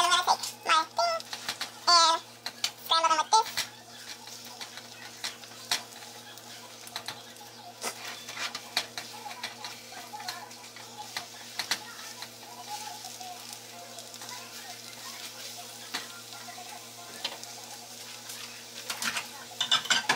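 Food sizzles softly in a hot pan.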